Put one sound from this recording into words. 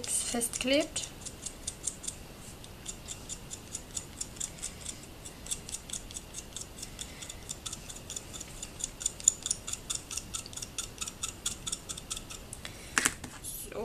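A small tool scrapes lightly on a crumbly surface in quick, soft strokes.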